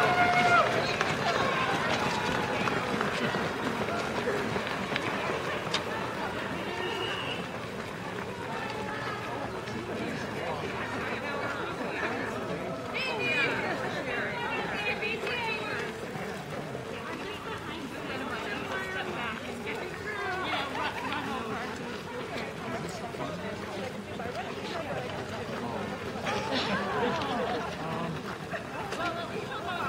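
A crowd of runners and walkers chatters outdoors.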